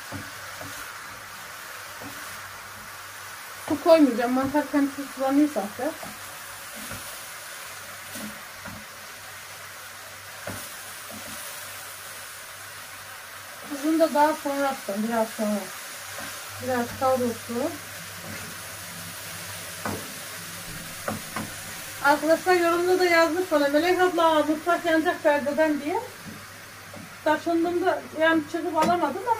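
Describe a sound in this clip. A wooden spoon scrapes and stirs mushrooms in a frying pan.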